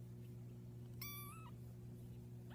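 A tiny kitten mews shrilly.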